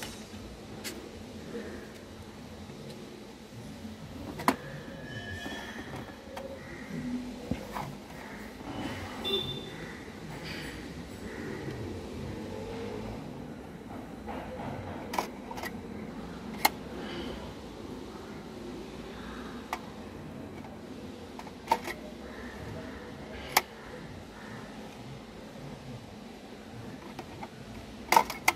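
Plastic discs click and clack as they are handled close by.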